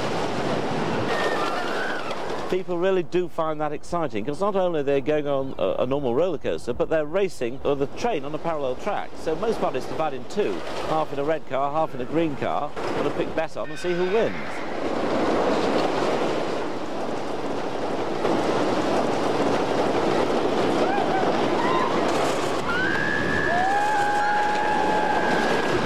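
A roller coaster rumbles and clatters along its track.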